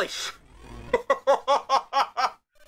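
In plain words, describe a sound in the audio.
A young man laughs in short, rhythmic bursts close to a microphone.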